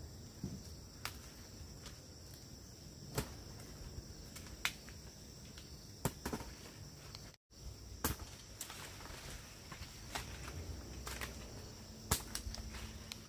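Fruit stems snap sharply off a branch.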